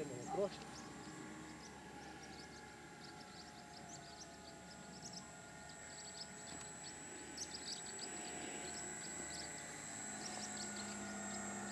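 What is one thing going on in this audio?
A model plane's small engine buzzes steadily overhead, growing louder as it comes closer.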